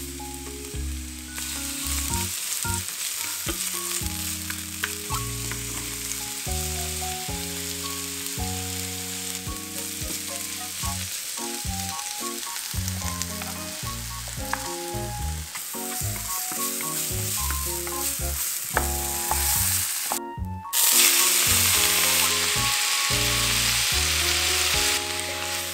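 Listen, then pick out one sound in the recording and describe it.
Vegetables sizzle in a hot frying pan.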